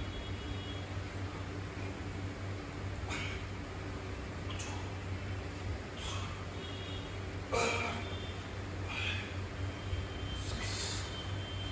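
A dumbbell clinks and knocks as a man lifts it over and over.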